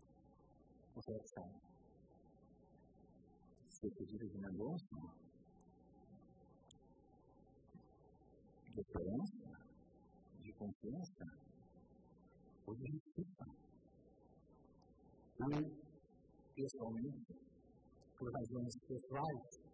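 A middle-aged man speaks formally into a microphone in a large room, with pauses between phrases.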